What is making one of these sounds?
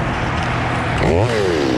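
A chainsaw revs up sharply.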